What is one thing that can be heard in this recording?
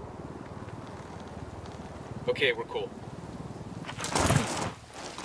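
Wind rushes past during a parachute descent.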